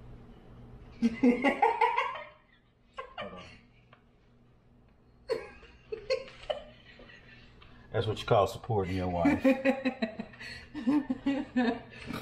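A young woman laughs and talks with animation nearby.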